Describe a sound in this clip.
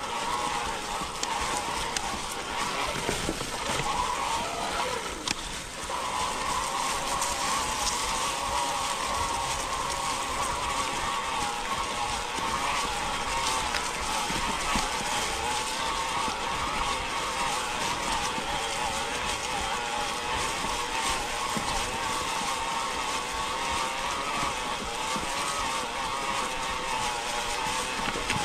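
Bike tyres crunch over dry leaves and rocks.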